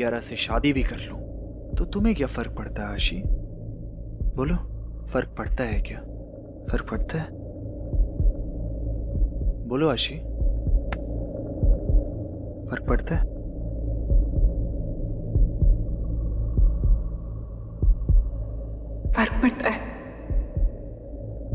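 A woman speaks quietly and tensely.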